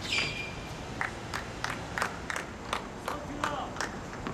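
A tennis ball bounces repeatedly on a hard court.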